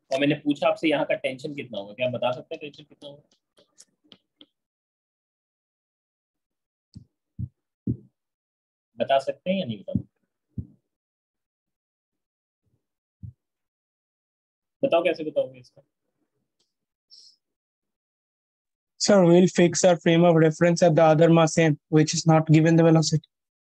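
A young man speaks calmly through a microphone, with pauses.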